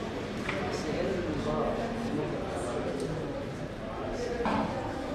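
Many people murmur and talk in a busy echoing hall.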